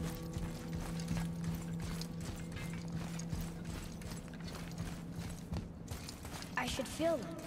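Heavy footsteps thud steadily on stone.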